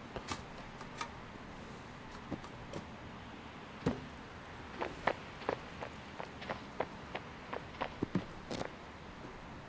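Light footsteps tap quickly on a hard surface.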